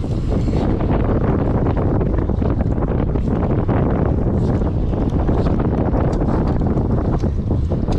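A fishing reel clicks and whirs as it is cranked.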